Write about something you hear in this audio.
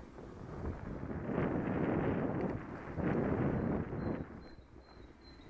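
Wind buffets loudly, with strong gusts.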